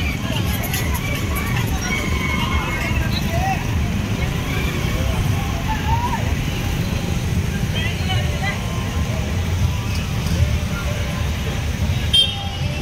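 Auto-rickshaw engines idle and putter nearby.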